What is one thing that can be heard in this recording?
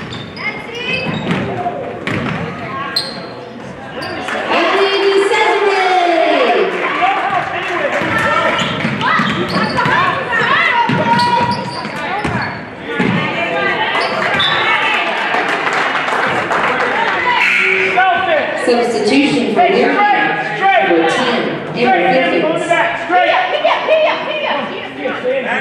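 A crowd in a large echoing gym cheers and shouts throughout.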